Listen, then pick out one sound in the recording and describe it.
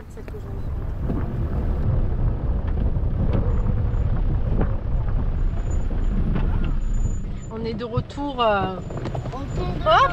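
A vehicle engine rumbles while driving over rough ground.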